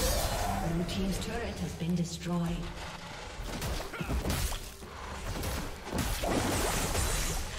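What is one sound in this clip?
Fantasy combat sound effects whoosh, zap and clash in quick bursts.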